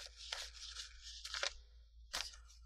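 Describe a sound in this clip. Paper banknotes rustle as they are counted.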